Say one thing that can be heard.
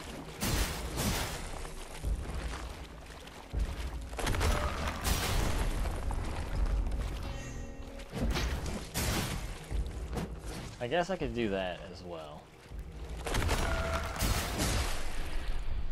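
Water splashes as figures wade and lunge through it.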